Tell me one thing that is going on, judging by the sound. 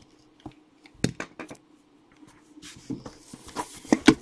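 A cardboard box scrapes and bumps as hands turn it over.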